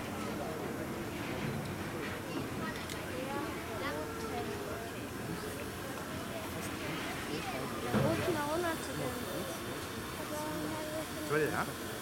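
A steam locomotive rumbles slowly as a turntable turns it.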